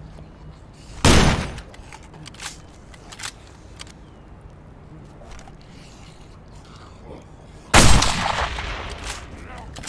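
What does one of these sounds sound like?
A rifle fires two loud, booming shots that echo and fade.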